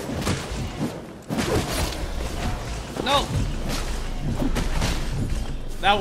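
Blades slash and clang in a fight.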